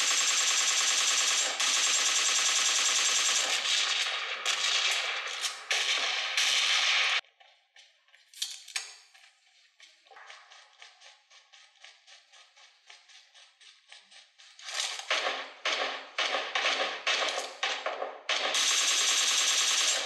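Rapid gunfire crackles from a phone speaker.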